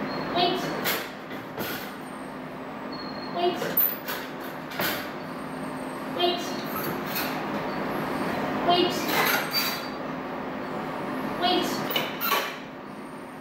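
Metal crate doors rattle and clank as they are opened one after another.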